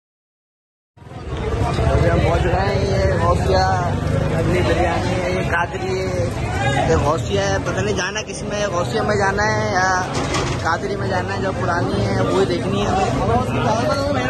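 A crowd chatters in a busy street outdoors.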